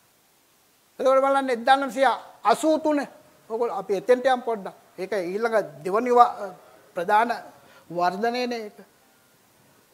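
An elderly man speaks with animation into a clip-on microphone.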